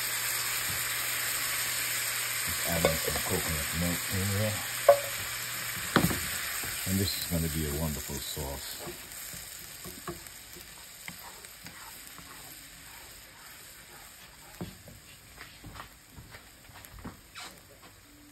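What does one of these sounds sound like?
Cream sauce sizzles and bubbles in a hot pan.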